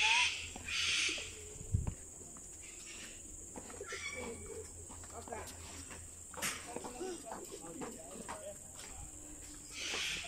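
A man talks quietly at a distance.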